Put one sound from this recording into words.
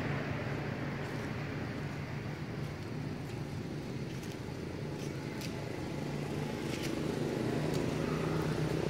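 Dry leaves rustle and crackle under a small monkey's feet.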